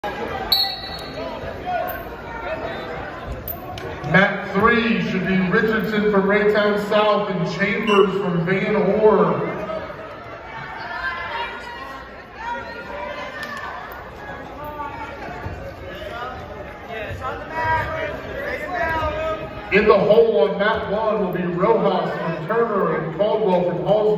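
Men and women in a crowd talk in the background.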